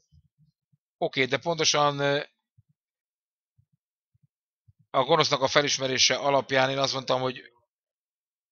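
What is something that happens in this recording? A man speaks with animation into a handheld microphone.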